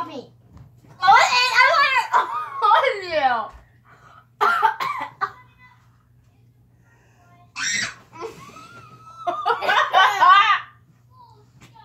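A young girl laughs loudly.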